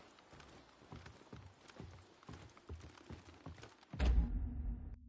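Footsteps creep slowly over a wooden floor.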